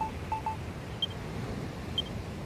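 A brighter chime sounds as a menu option opens.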